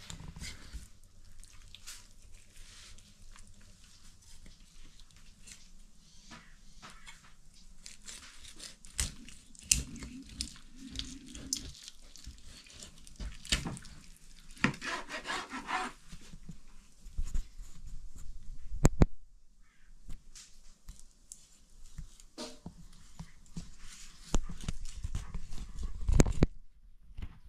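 A knife scrapes and cuts through a fish.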